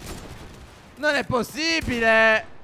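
A young man exclaims loudly and excitedly into a close microphone.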